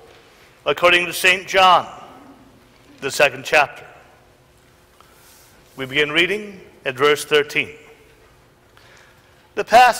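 A man reads aloud steadily into a microphone in a room with a slight echo.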